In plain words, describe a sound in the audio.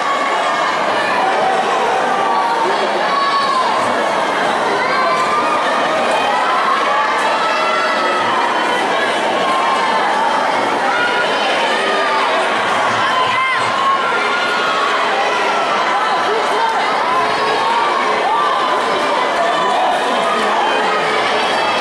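A large crowd chatters and calls out throughout an echoing hall.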